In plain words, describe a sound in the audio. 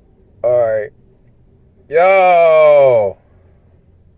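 A man speaks close to a microphone in a calm, drawn-out voice.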